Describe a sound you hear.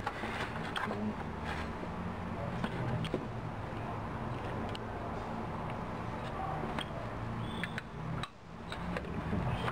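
Metal parts click and clink.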